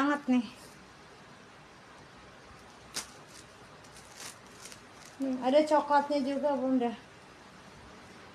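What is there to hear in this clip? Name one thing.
Fabric rustles as a scarf is flung about.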